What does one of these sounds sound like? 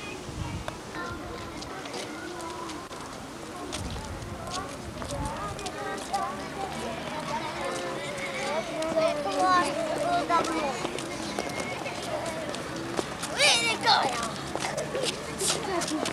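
Footsteps shuffle across hard pavement outdoors.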